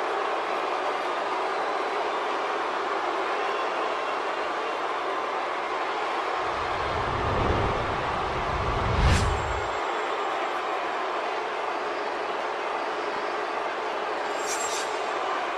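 A large crowd cheers loudly in a big arena.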